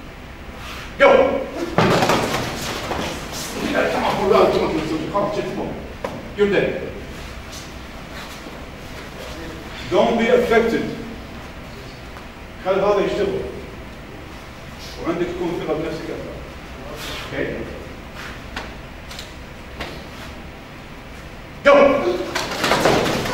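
Several men shout together in short loud bursts.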